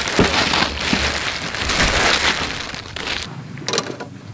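Plastic gloves rustle against raw chicken.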